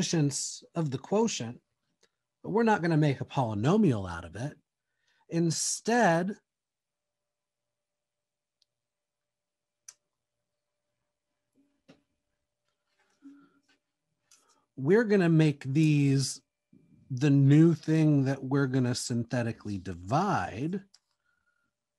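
A man speaks calmly and clearly into a close microphone, pausing between phrases.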